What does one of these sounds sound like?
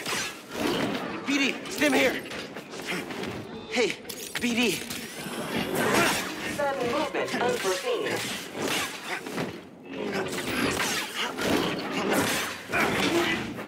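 Lightsabers clash sharply against metal.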